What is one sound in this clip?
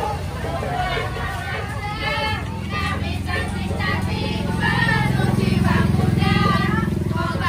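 A crowd of women chants together with animation.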